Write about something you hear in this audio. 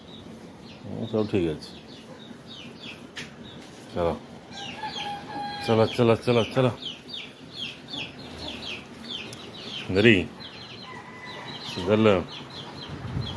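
A cow moos nearby in short, repeated calls.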